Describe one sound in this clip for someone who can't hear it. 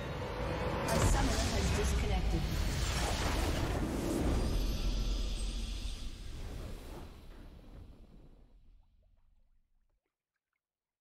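A triumphant orchestral fanfare swells, then fades away into silence.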